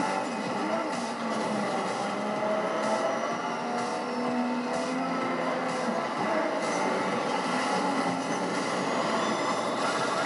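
Car tyres skid and crunch over dirt.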